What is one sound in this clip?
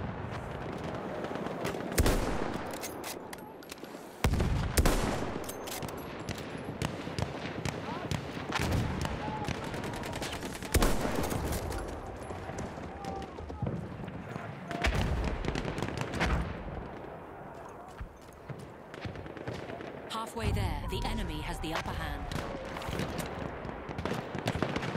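Gunfire and explosions rumble in the distance.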